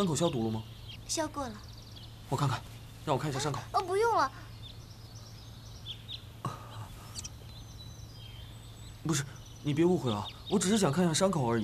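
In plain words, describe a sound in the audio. A young man speaks calmly nearby, then earnestly.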